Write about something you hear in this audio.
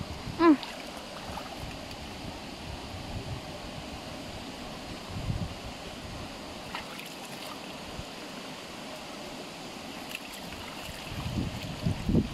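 Water splashes and trickles.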